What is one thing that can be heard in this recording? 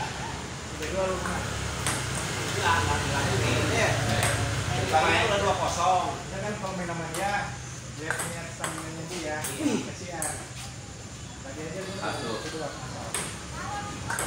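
A ping pong ball clicks back and forth off paddles and the table.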